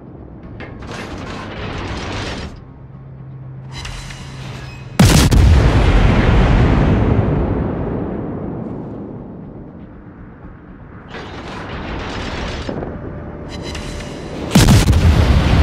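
Shells burst with crackling explosions in the distance.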